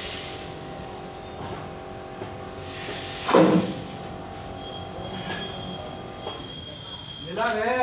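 A diesel engine runs with a steady, rumbling hum.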